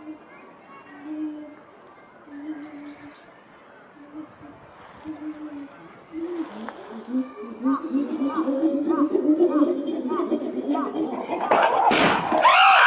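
A chimpanzee hoots rhythmically, rising in pitch and speeding up.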